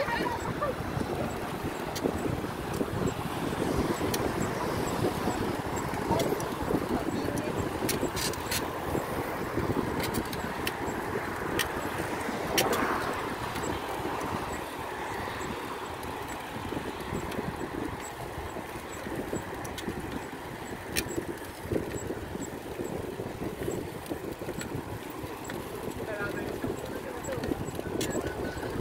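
Bicycle tyres hum on smooth pavement.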